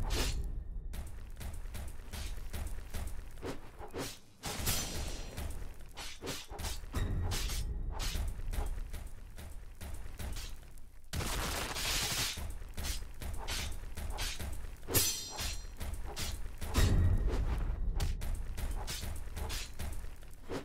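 A sword slashes and strikes a monster with sharp hits.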